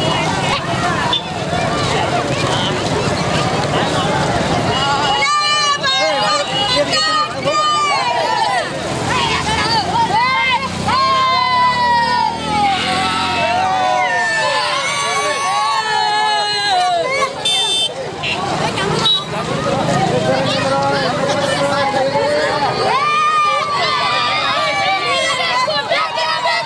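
Motorcycle engines putter slowly nearby.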